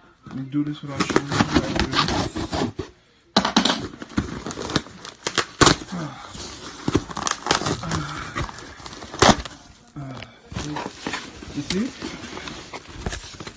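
Cardboard rustles and crackles close by.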